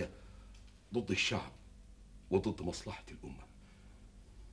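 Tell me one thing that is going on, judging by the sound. A middle-aged man speaks sternly and close by.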